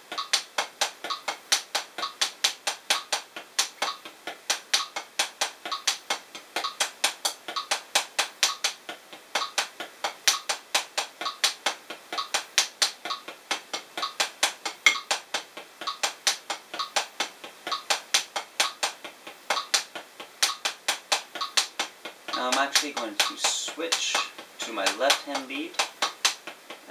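Drumsticks tap quickly and steadily on a practice pad.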